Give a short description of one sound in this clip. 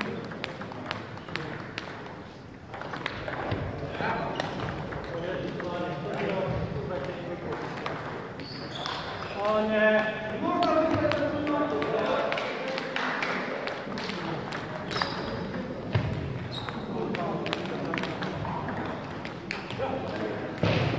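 A table tennis ball clicks quickly back and forth off paddles and a table in an echoing hall.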